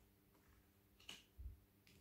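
A card taps softly on a table.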